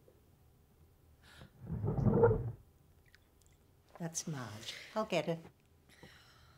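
An elderly woman speaks softly, close by.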